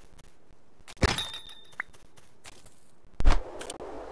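Game sound effects chime and thud.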